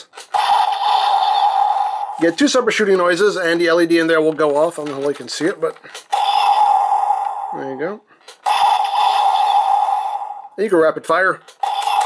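A toy plays loud electronic sound effects through a small tinny speaker.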